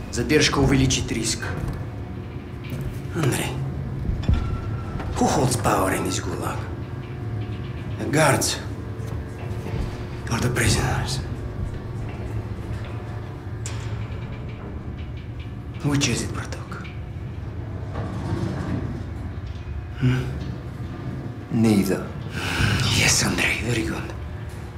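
A man speaks in a low, menacing voice, close up.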